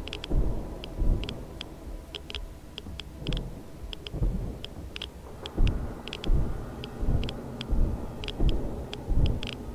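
Muffled underwater rumbling swells and fades in slow surges.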